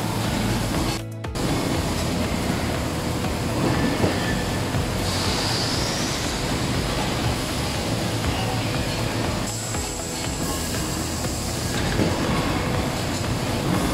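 Workshop machinery rumbles and rattles steadily.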